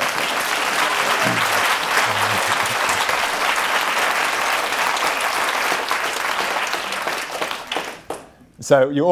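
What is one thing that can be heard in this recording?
A large audience applauds and cheers loudly.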